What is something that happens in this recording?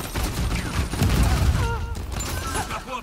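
Gunshots blast loudly in rapid bursts.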